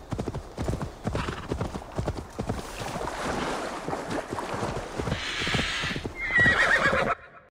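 Horse hooves thud steadily on soft snowy ground.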